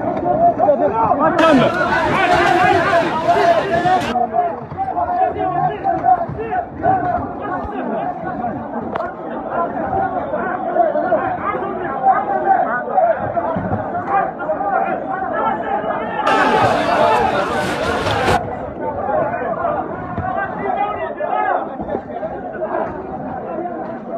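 A crowd of young men shout and chant loudly close by.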